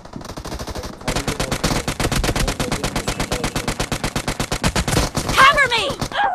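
A rapid burst of gunfire rattles close by.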